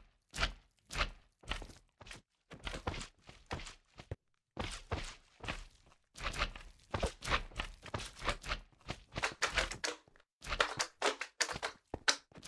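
A sword strikes slimes with soft, wet thuds.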